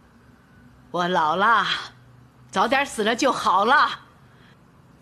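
An elderly woman speaks softly and sadly.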